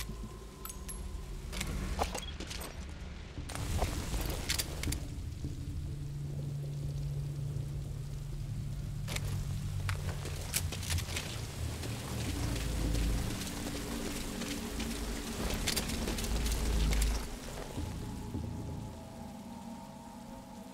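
Rain pours down steadily outdoors.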